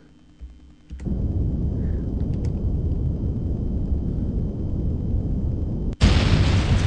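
Rocket engines roar with a deep, steady rumble.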